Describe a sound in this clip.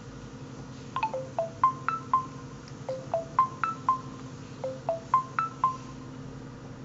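A phone gives a series of short falling electronic tones.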